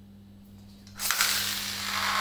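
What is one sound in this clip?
A spinning top is launched and whirs across a hard floor.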